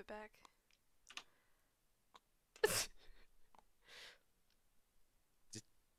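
A young woman speaks cheerfully into a microphone.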